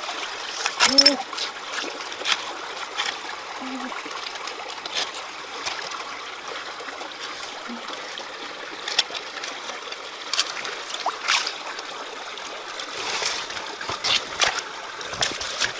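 Pebbles click and scrape as hands dig among stones.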